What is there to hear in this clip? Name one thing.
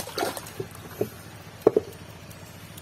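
Water splashes as a hand reaches into pond water.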